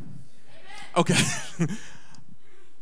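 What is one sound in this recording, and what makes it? A man laughs into a microphone.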